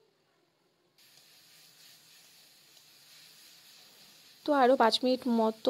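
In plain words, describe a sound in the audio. Food sizzles softly in a hot pan.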